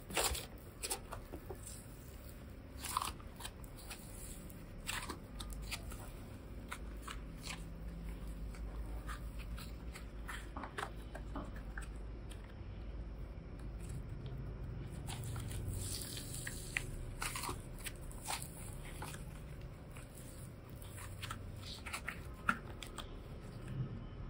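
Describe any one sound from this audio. Soft clay squishes and squelches between hands.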